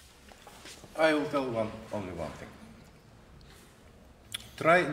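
A man speaks calmly in a large hall, with some echo.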